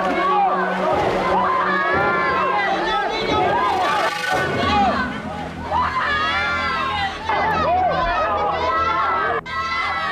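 Water splashes as people thrash in a pool.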